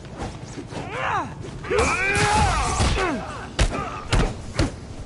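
Swift blows whoosh through the air.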